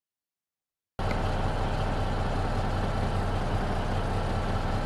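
A diesel semi truck engine idles.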